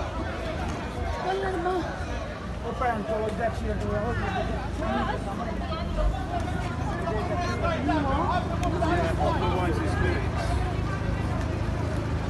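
A crowd of men shout and talk excitedly nearby, outdoors.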